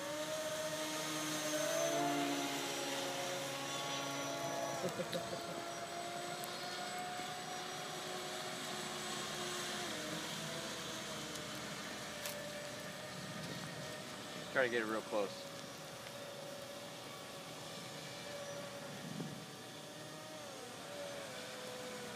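A small model boat motor whines across the water, its pitch rising and falling.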